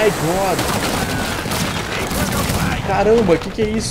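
Cannons fire with deep booms.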